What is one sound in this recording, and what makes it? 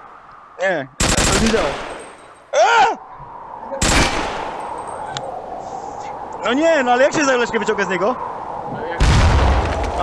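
Gunshots bang loudly, one at a time.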